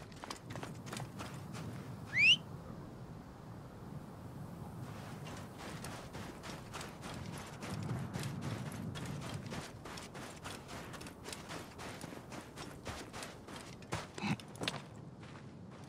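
Footsteps run quickly across soft sand.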